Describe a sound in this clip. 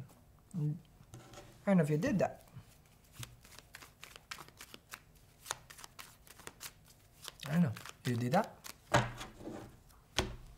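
Playing cards riffle and tap as a man shuffles them.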